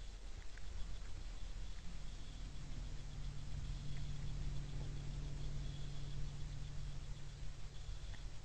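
A deer crunches corn as it feeds.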